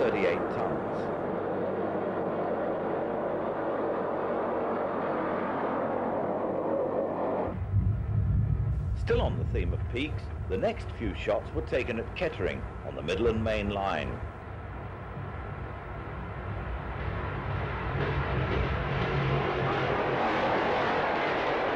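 A diesel locomotive rumbles past.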